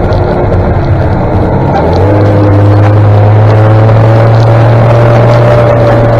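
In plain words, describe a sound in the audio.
Tractor engines rumble steadily close ahead.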